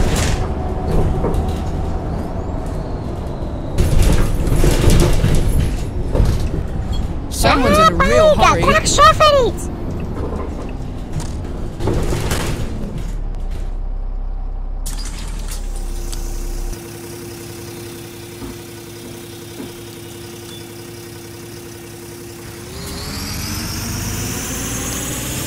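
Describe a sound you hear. A bus engine rumbles as the bus drives along.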